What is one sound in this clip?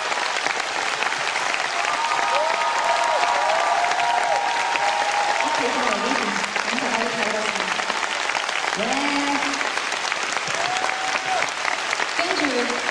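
A large crowd claps and cheers loudly in a big echoing hall.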